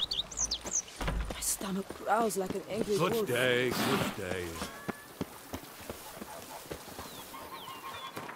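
Footsteps run quickly over stone paving.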